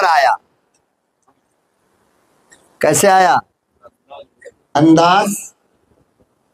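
An elderly man speaks forcefully into a microphone, with long pauses, through a loudspeaker.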